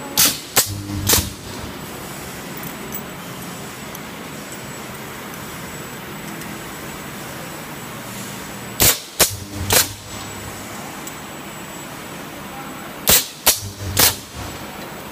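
A spot welder snaps with sharp cracking bursts in quick groups.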